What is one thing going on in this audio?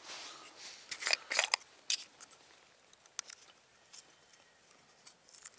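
Ice crunches and clicks as hands work at a hole in the ice.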